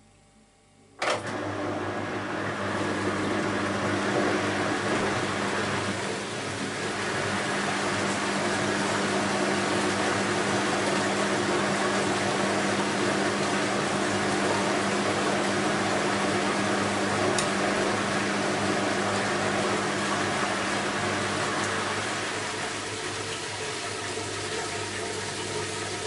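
Water and laundry slosh and splash inside a turning washing machine drum.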